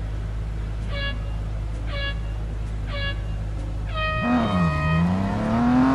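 Three short beeps count down, followed by a longer higher beep.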